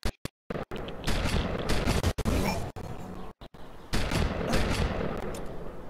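Shotgun blasts fire in quick bursts.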